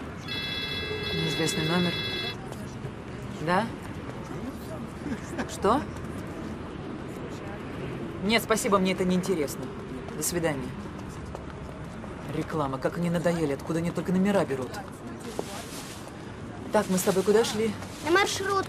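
A young woman talks on a phone.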